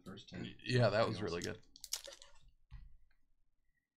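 A foil wrapper crinkles as hands handle it.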